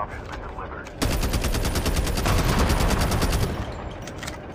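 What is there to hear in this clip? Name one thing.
A heavy gun fires in a rapid, rattling burst.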